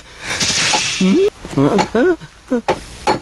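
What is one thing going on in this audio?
A young man cries out in fear.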